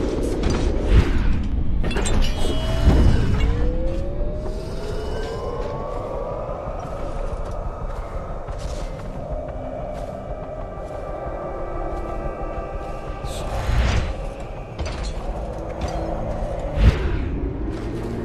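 A sharp magical whoosh rushes past.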